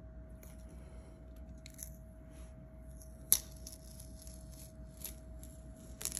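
Vinyl sticker backing peels away with soft crackles.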